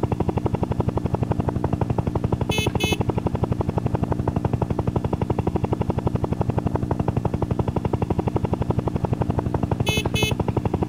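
A helicopter's rotor chops rapidly and steadily.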